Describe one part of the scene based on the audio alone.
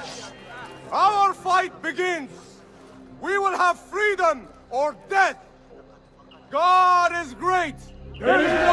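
A man shouts commands with animation.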